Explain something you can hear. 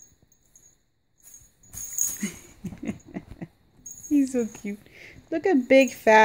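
A cat pounces on a blanket.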